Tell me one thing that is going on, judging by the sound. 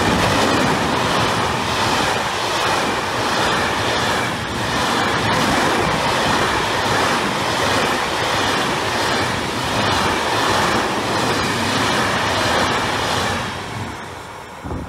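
A freight train rumbles past on the tracks, loud and steady, then fades away.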